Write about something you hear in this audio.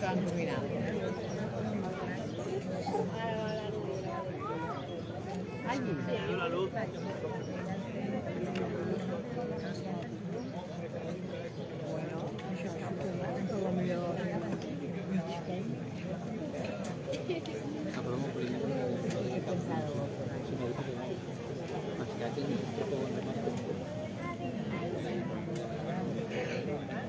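A crowd of people chatter outdoors.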